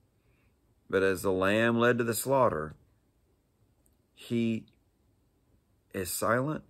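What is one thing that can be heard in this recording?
A middle-aged man speaks calmly, close to the microphone, with pauses.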